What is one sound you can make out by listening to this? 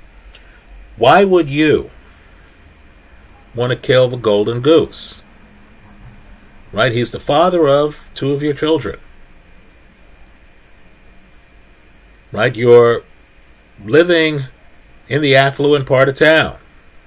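A man speaks close to a microphone in short, animated bursts with pauses between them.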